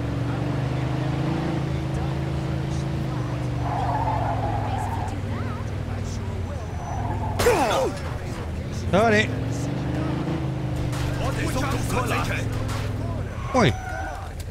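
A car engine hums steadily, then fades out.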